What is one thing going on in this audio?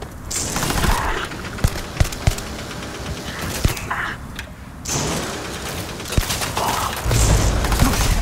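A laser rifle fires in rapid bursts.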